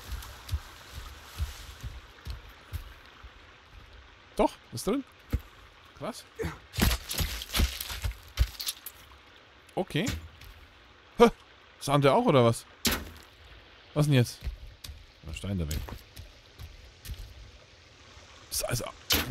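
Footsteps thud softly on grassy ground.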